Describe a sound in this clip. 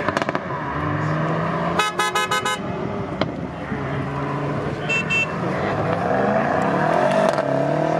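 A powerful car engine revs loudly as the car accelerates past.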